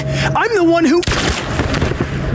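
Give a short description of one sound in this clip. A gunshot bangs loudly and echoes.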